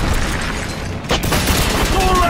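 A rocket launcher fires with a sharp whoosh.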